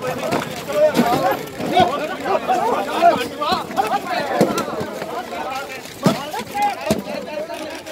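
Blows and scuffling thud sharply among the crowd.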